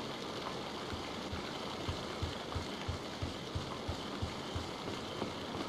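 High-heeled footsteps tap on a stone floor at a quick pace.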